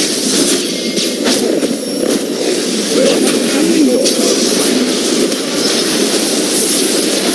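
Spell effects and hits crackle and thump in a fast game fight.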